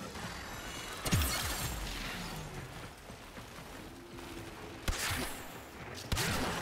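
Gunfire bursts and explosions boom.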